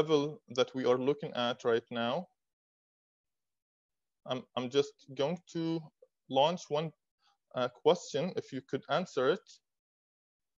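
A young man speaks calmly through an online call microphone.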